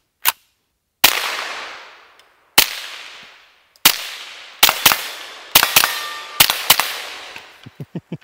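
A rifle fires loud shots that echo through the woods.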